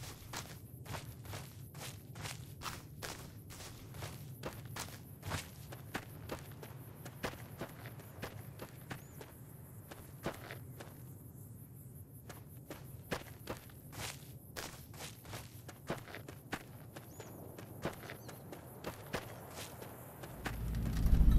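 Footsteps crunch steadily on dry gravel.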